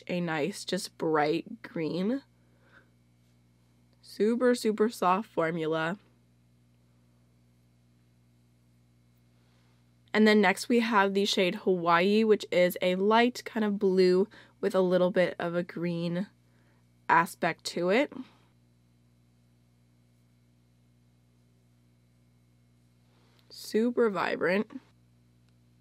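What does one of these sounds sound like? A young woman talks calmly and clearly into a close microphone, in short bursts.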